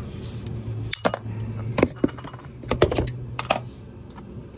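A metal canister knocks against a plastic tub.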